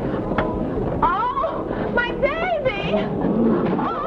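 A woman sings loudly with animation.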